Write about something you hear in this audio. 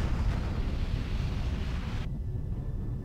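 An explosion rumbles and roars.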